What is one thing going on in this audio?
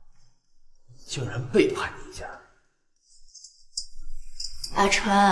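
A young woman speaks bitterly and with emotion, close by.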